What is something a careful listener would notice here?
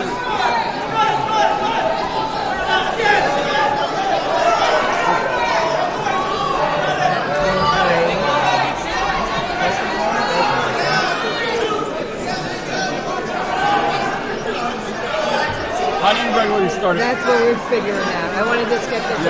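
A crowd of people chatters and calls out in a large echoing hall.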